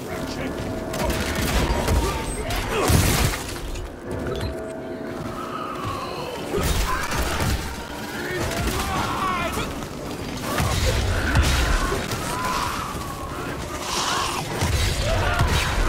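Flames roar and crackle in bursts.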